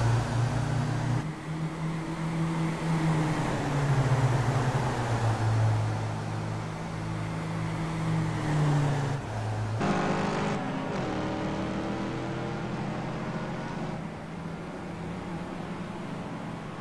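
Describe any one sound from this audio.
A racing car engine roars loudly, its pitch rising and falling with gear changes.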